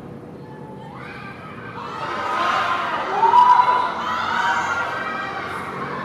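A crowd of young women shout and cheer loudly outdoors.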